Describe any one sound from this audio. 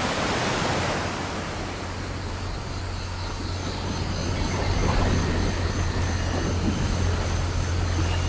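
A river flows gently.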